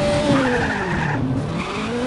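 Tyres skid and scrape on dirt.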